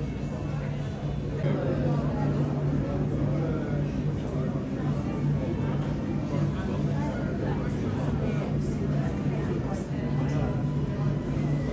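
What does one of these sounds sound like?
Jet engines hum steadily as an airliner taxis.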